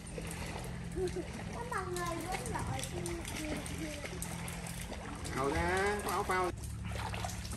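Children's voices call out nearby.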